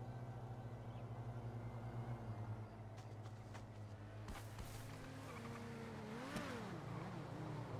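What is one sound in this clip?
A car engine drones and revs as a car drives past.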